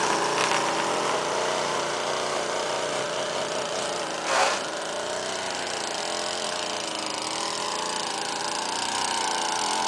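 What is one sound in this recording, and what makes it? A string trimmer engine whines steadily nearby, outdoors.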